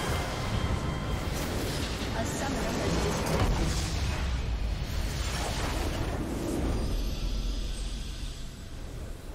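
A large explosion booms and crackles, then fades away.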